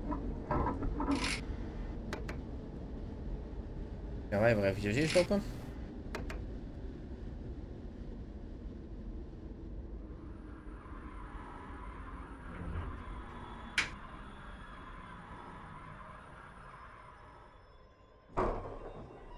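A train rumbles steadily along the track and slowly fades.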